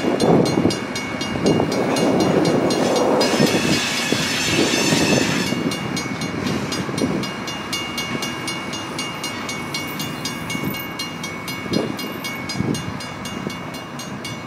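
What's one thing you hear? A locomotive engine rumbles as a freight train rolls slowly away.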